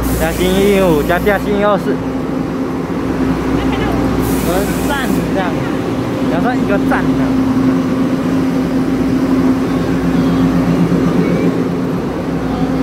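A train engine hums steadily nearby.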